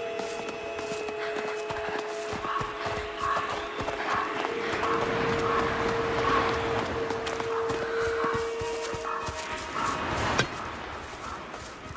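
Footsteps patter on a dirt path.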